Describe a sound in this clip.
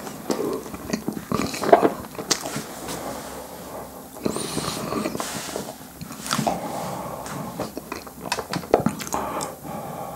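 A young man chews food noisily close to a microphone.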